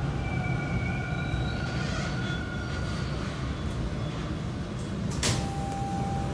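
A subway train rumbles steadily through a station.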